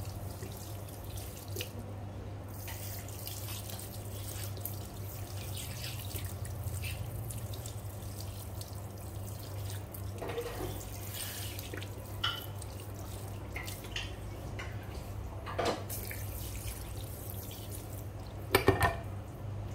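Hands rub and knead a bare foot with soft swishing strokes.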